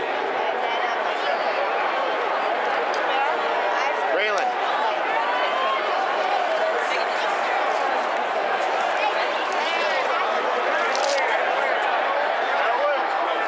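A large stadium crowd roars and cheers throughout.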